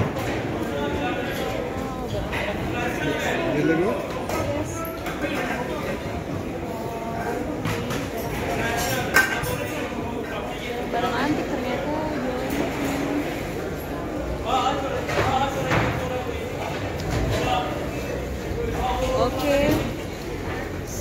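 Crowd chatter fills a large echoing hall.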